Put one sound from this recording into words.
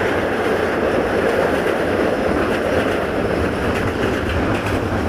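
Wheels clatter rhythmically over rail joints.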